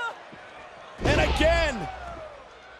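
A body slams onto a ring mat with a heavy, booming thud.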